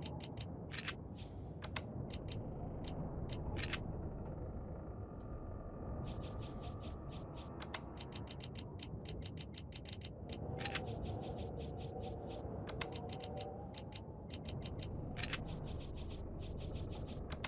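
Short electronic menu clicks tick rapidly.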